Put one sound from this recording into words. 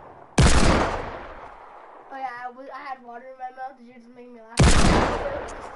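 A pistol fires loud single shots.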